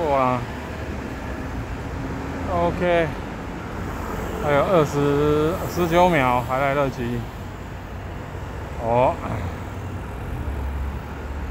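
Traffic rumbles along a street outdoors.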